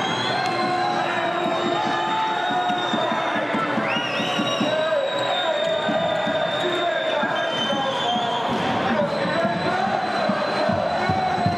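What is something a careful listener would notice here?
A ball bounces on a hard court floor.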